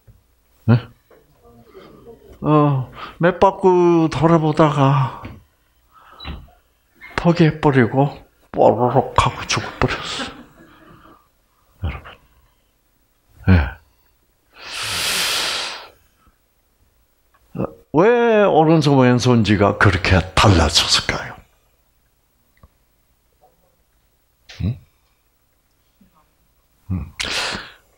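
An elderly man speaks with animation into a headset microphone, in short bursts with pauses.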